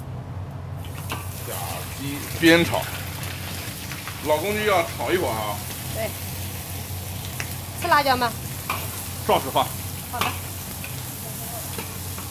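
Meat sizzles loudly in hot oil.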